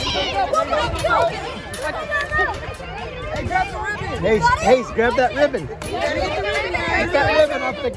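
A woman laughs and cheers close by.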